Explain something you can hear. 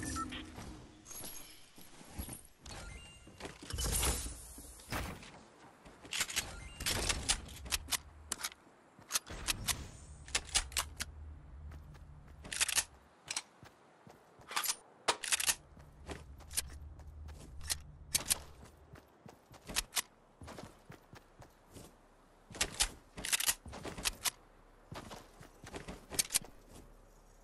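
Footsteps patter quickly on wood and grass.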